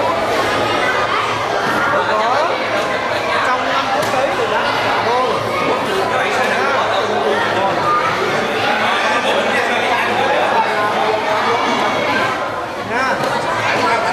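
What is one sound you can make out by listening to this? A crowd of children and adults chatter and call out excitedly close by.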